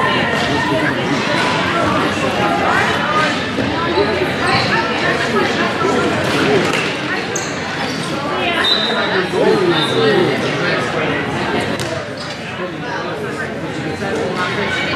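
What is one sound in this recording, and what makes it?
Young women shout and call out in a large echoing hall.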